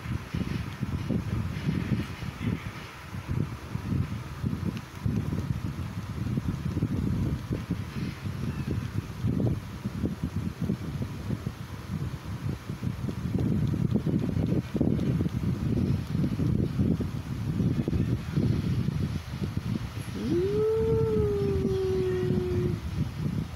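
A small puppy growls and grumbles playfully up close.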